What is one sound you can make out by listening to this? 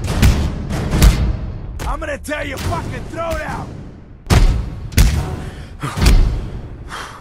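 Fists thud hard into a face in quick blows.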